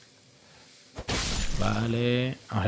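A sword slashes into a large creature with a heavy thud.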